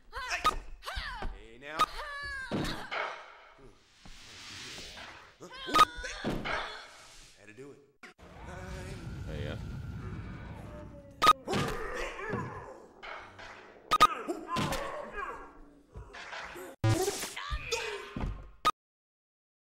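Gunshots crack sharply in a video game.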